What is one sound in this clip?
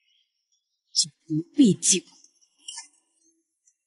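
A young woman speaks lightly and sweetly.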